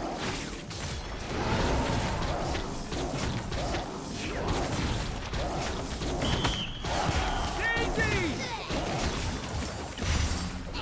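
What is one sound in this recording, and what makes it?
Spell effects and impacts crackle and whoosh in a fast fight.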